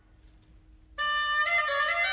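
An orchestra begins to play.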